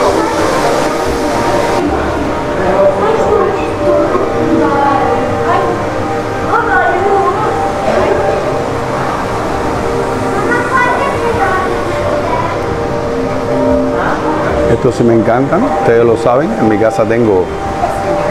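Many people chatter indistinctly nearby in a large echoing hall.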